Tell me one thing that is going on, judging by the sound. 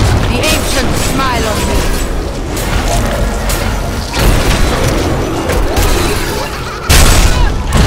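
Magic blasts and explosions crash and boom in quick succession.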